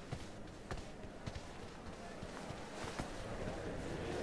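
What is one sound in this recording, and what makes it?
Footsteps walk slowly across a wooden floor in a large echoing hall.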